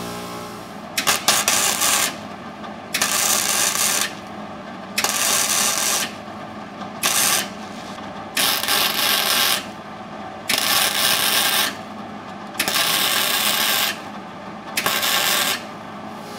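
An arc welder crackles and sizzles in short bursts.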